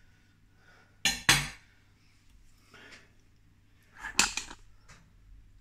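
A knife scrapes and taps on a plate.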